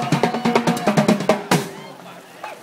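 A drum kit is played with loud, quick beats outdoors.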